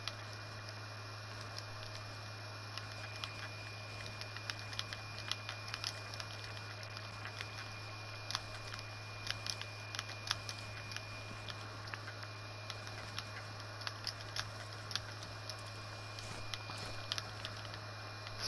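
Building pieces click into place in quick succession.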